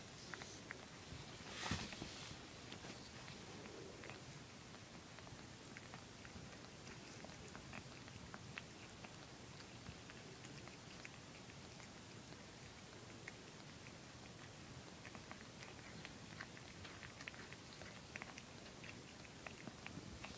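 Newborn kittens suckle with soft, wet clicking sounds close by.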